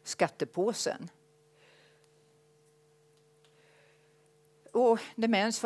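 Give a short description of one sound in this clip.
An elderly woman speaks calmly into a microphone, pausing between phrases.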